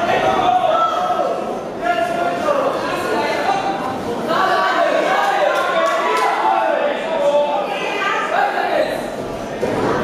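Boxing gloves thud against a boxer's body.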